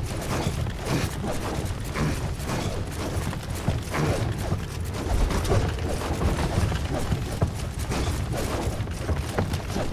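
Footsteps thud quickly on wooden floorboards.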